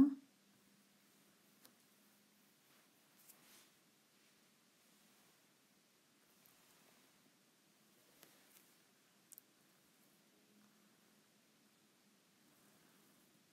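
Cloth rustles softly as it is folded and handled.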